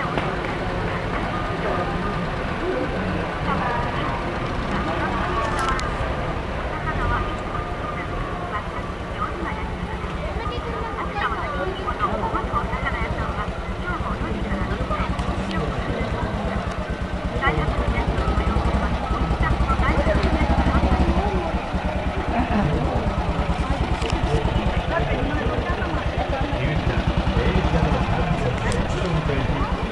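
A small car engine putters steadily at low speed.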